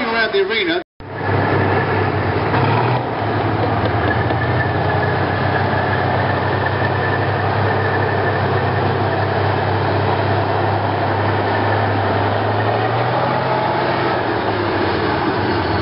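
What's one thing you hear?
Tank tracks clank and squeal as the tank rolls past.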